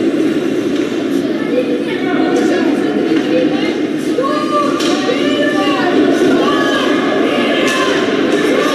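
Hockey sticks knock against a puck.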